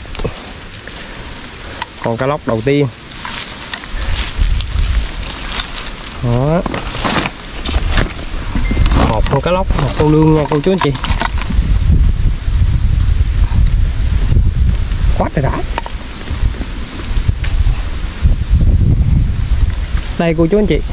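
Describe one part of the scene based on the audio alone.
A net rustles as it is handled.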